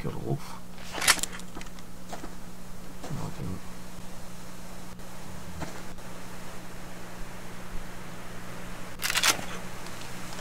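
A shotgun action clicks and clacks as it is handled.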